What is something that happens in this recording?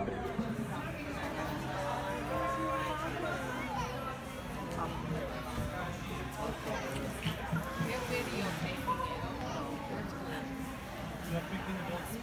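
A young woman laughs softly and talks with emotion.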